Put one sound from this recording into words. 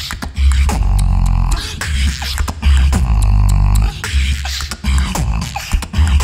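A young man beatboxes with deep bass and sharp drum sounds through a microphone and loudspeakers.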